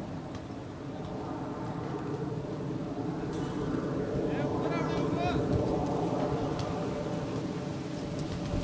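Several men talk and call out outdoors at a distance.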